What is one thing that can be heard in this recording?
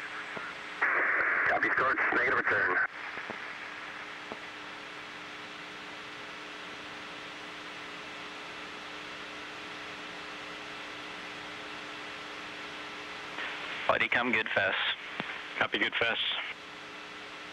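A man speaks calmly over a crackly radio link.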